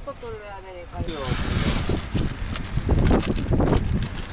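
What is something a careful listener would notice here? Rice and water pour from a plastic bag into a metal pot.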